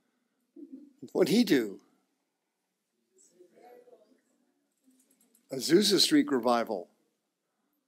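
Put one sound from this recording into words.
A man speaks calmly in short phrases with pauses.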